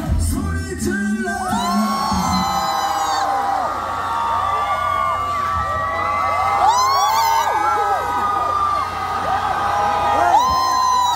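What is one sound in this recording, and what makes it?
A young man sings energetically into a microphone through loudspeakers.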